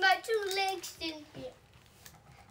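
A young girl speaks brightly close by.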